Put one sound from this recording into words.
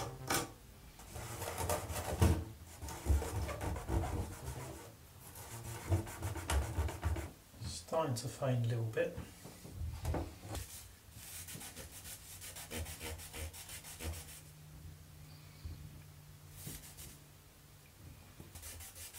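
A cloth rubs and scrubs against plastic.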